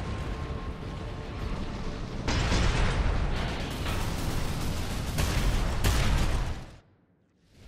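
Fire roars steadily.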